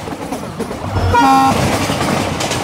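A diesel locomotive's horn sounds.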